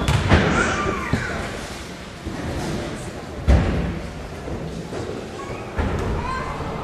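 A basketball bounces on a wooden court in an echoing hall.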